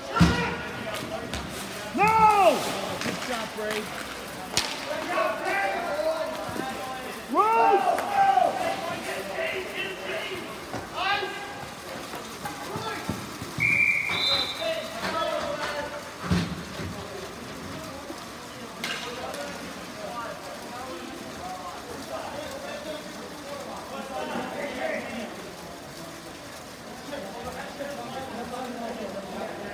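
Skate wheels roll and scrape on a hard rink floor.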